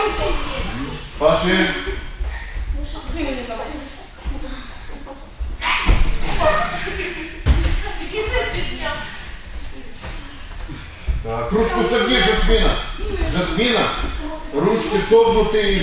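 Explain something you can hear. A man talks steadily nearby in an echoing room.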